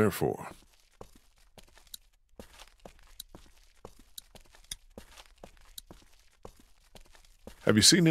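Footsteps tap slowly on hard ground.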